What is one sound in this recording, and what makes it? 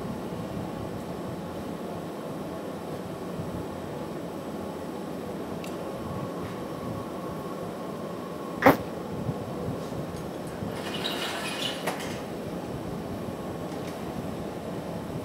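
A furnace roars steadily.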